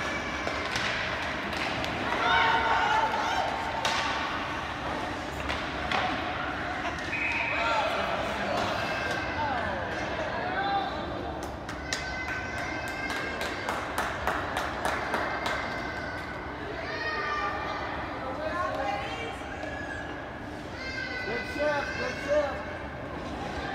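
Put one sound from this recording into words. Hockey sticks and pucks clack on the ice.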